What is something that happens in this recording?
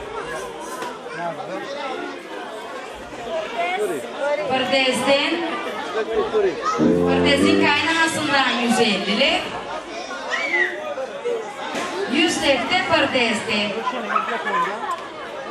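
A crowd of people chatter in a large echoing hall.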